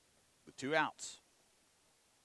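A man shouts loudly outdoors.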